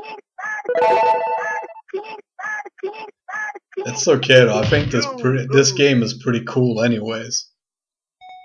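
Arcade game sound effects play in quick, loud bursts.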